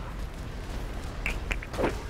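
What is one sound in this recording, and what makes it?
A fireball explodes with a deep boom.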